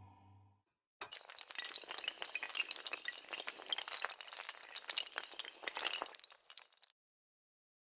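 Dominoes clatter rapidly as they topple in a chain.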